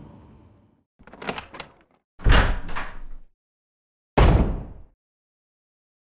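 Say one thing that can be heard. A heavy wooden door creaks open and thuds shut.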